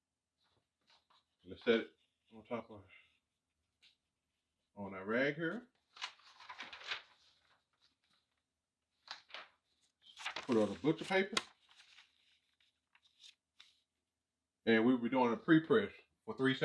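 Paper rustles as it is laid down and smoothed by hand.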